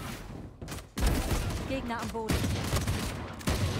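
A pistol fires several quick shots.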